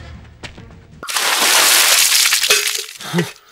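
Water splashes down from a pot.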